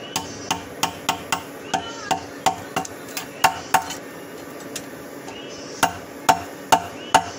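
A hammer rings sharply on hot metal on an anvil in quick, steady blows.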